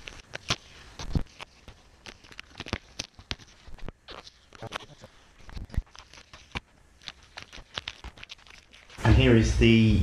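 A paper scraper rubs and scrapes across a smooth hard surface in short strokes.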